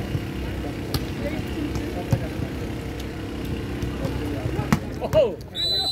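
A volleyball smacks off players' hands.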